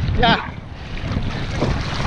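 A fishing reel clicks as its line is wound in.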